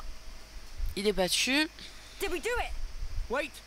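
A young woman asks a question in a worried voice.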